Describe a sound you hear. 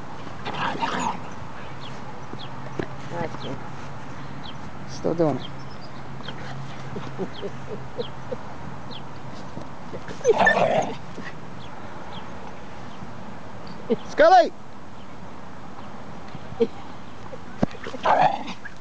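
A small dog yelps and whines in short bursts.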